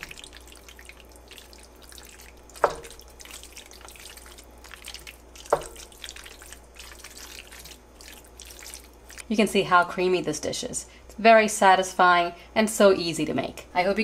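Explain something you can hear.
A wooden spoon stirs thick pasta in a metal pot with soft squelching scrapes.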